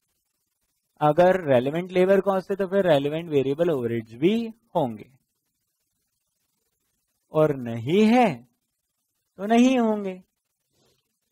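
A man speaks clearly into a close microphone, lecturing with animation.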